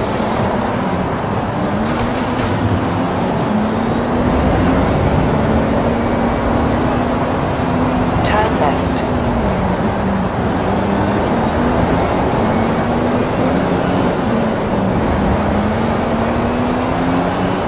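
A car engine roars and revs up and down through the gears.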